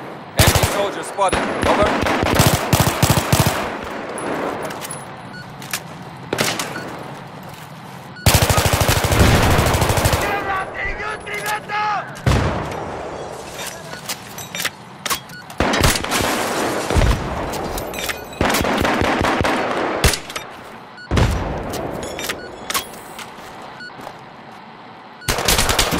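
Rapid gunfire bursts crack loudly.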